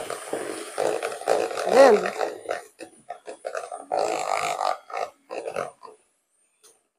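An electric hand mixer whirs as it beats a thick batter.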